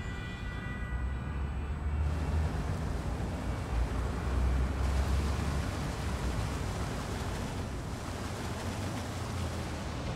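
A bus engine hums low as the bus drives along.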